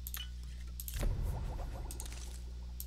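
A low game sound effect swells when a potion is made.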